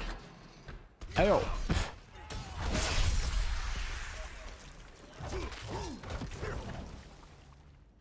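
Blades strike and slash in a fierce fight, with crashing hits.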